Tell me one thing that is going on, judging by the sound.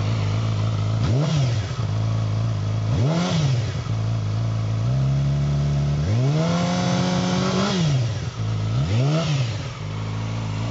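A motorcycle engine revs up sharply and falls back, several times.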